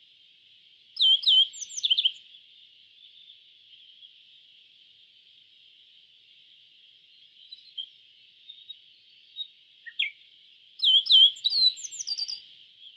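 A small bird sings a short series of high, bright chirping notes.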